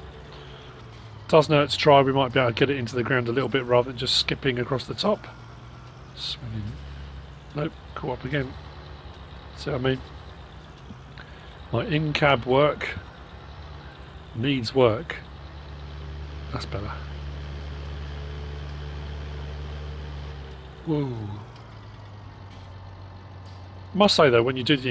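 A tractor engine rumbles steadily as it drives along.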